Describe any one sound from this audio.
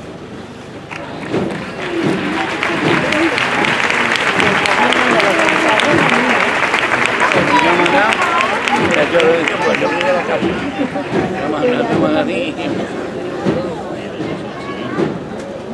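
A large crowd of people chatters and murmurs outdoors.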